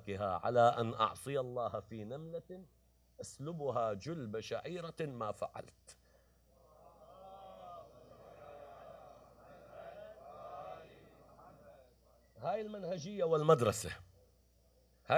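A man speaks with animation into a microphone, close by.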